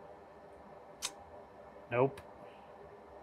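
Metal tweezers click softly against a circuit board.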